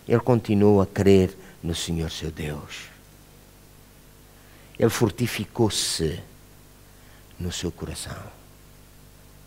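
A middle-aged man speaks calmly and with emphasis through a microphone, in pauses.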